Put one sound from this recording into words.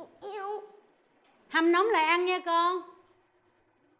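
A middle-aged woman speaks emotionally up close.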